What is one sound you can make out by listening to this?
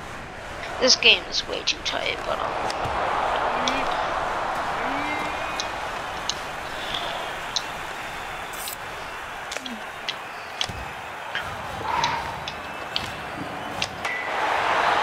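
Hockey sticks click sharply against a puck.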